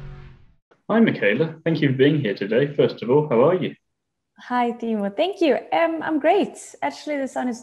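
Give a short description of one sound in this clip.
A young woman talks cheerfully through an online call.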